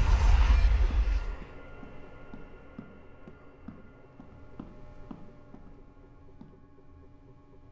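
Slow footsteps echo along a hard floor.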